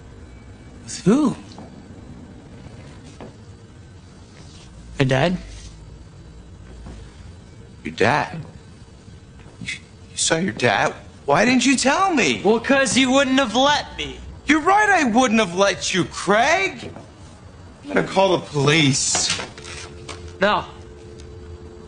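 A middle-aged man speaks firmly, growing more forceful.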